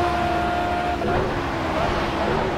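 A racing car engine drops sharply in pitch as the car brakes and shifts down.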